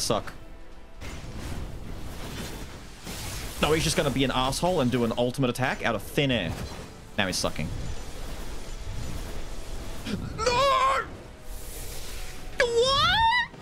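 Sword slashes and magical blasts crash in a fast fight.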